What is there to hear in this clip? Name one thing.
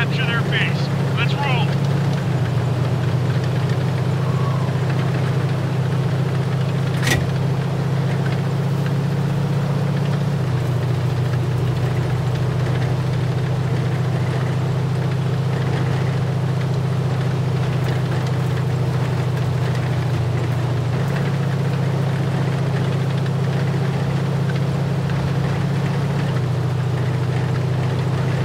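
Tank tracks clatter and grind over snow.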